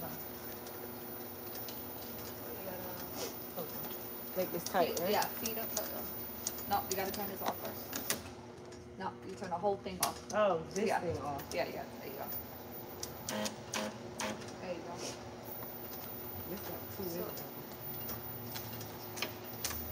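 Labels click and tap through a machine.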